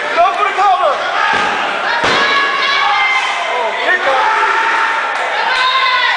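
A referee slaps the wrestling mat several times.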